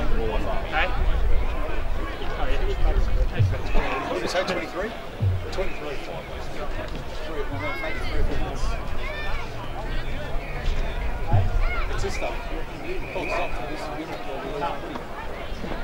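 Men shout and call out across an open field.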